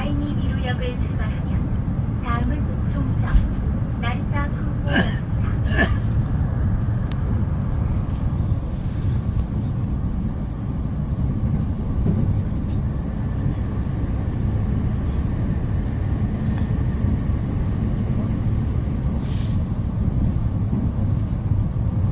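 An electric express train rumbles along the track at speed, heard from inside.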